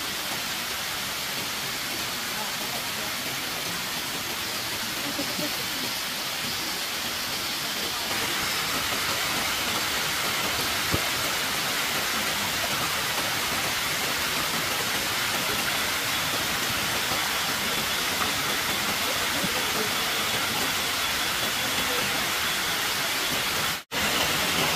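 A stream rushes and splashes steadily over rocks nearby.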